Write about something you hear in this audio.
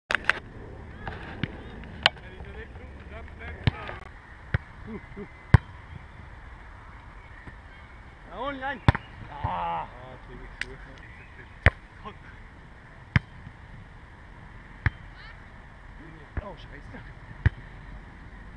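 A volleyball is struck with dull thumps, outdoors.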